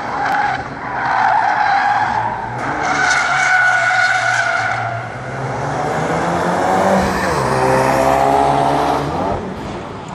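Tyres screech on asphalt.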